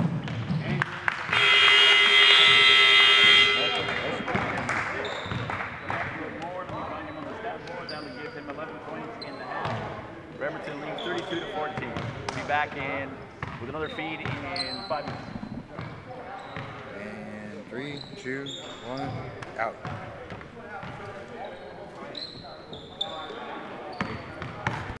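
Young men call out and talk in a large echoing gym.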